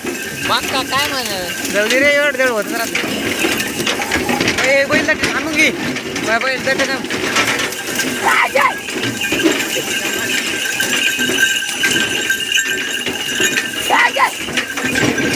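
Dry grass rustles and swishes as a bullock cart pushes through it.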